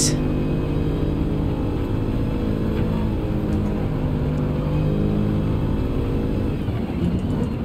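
A car engine roars steadily at high speed.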